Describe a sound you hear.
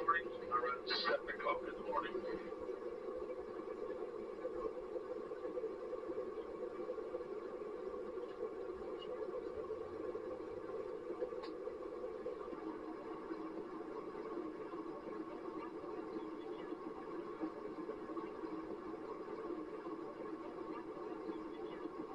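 An aircraft's engines drone steadily inside the cabin.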